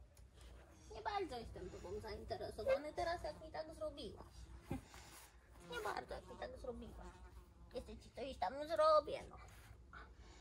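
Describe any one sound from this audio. A young woman talks to a puppy in a soft, animated voice close by.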